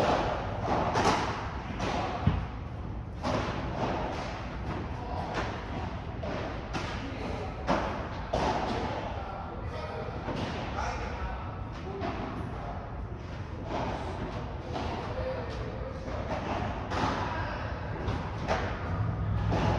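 Padel rackets hit a ball in a sharp, echoing rally indoors.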